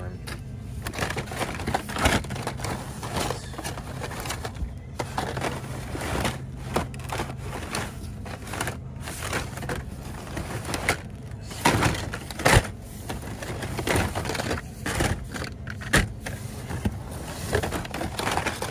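Plastic blister packs and cardboard cards rustle and clack as a hand rummages through them.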